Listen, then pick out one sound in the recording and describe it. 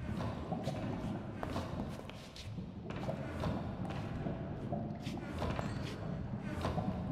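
Footsteps tap on stone at an even pace.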